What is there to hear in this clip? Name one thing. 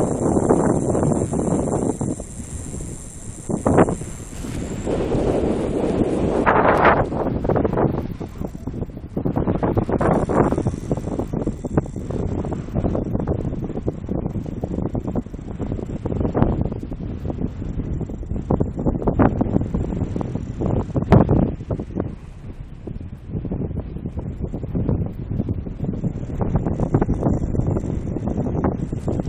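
Strong wind gusts and buffets loudly outdoors throughout.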